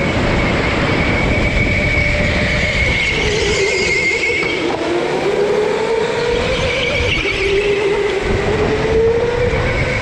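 Kart tyres hiss and rumble on a smooth floor.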